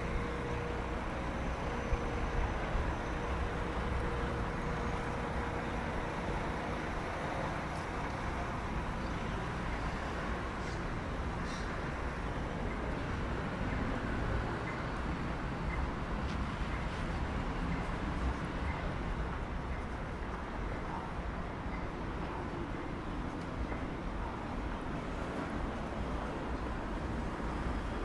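City traffic hums steadily in the distance outdoors.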